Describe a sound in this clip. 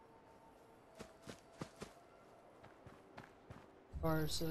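Footsteps crunch through dry leaves and grass.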